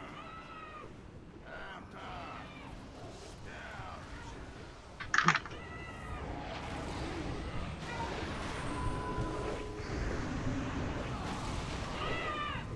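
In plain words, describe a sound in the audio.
Magic spells whoosh and crackle in quick succession.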